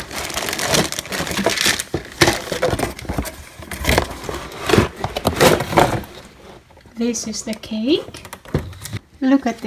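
Plastic wrap crinkles under fingers.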